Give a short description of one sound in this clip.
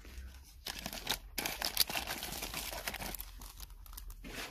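Plastic packaging crinkles as a hand handles it.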